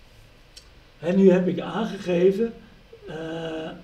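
An older man speaks calmly and clearly, close by.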